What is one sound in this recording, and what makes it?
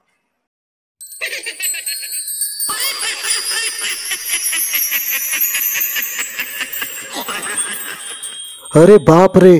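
A magical shimmering chime rings out.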